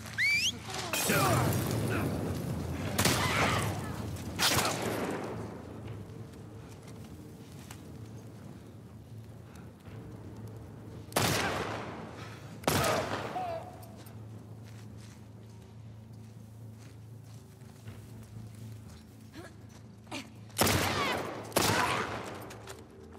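Gunshots crack loudly, each followed by a ringing echo.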